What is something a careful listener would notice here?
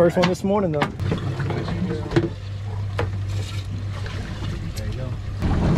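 A boat engine idles with a steady low hum.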